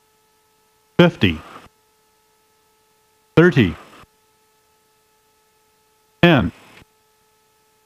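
A man speaks in short bursts over a headset microphone.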